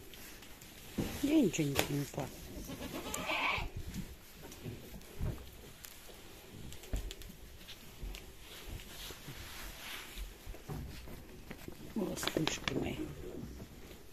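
Goats bleat close by.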